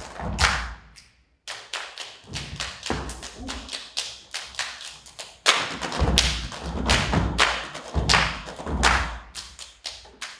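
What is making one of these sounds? Feet stomp heavily on a wooden stage floor.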